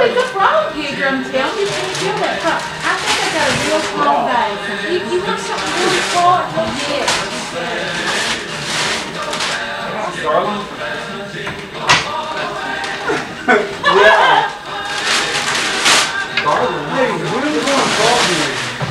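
Several men and women talk and chat casually nearby.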